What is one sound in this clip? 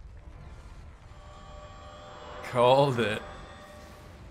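A shimmering magical chime rings out and swells.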